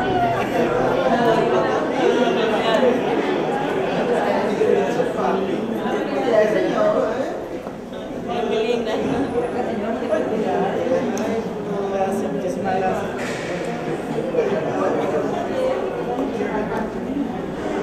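A woman greets others warmly and with animation close by.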